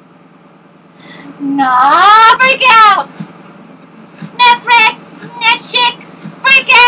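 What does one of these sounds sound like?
A young woman sings loudly into a microphone close by.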